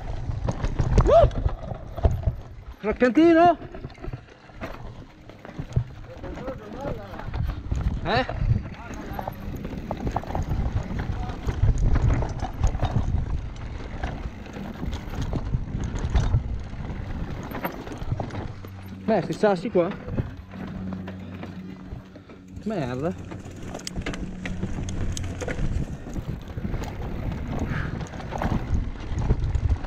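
Bike tyres roll and crunch over a rough dirt trail.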